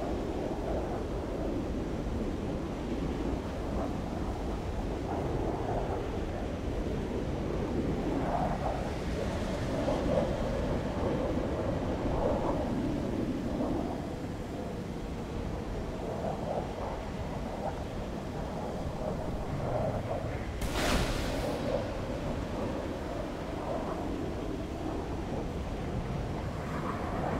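A jet engine roars steadily with afterburners.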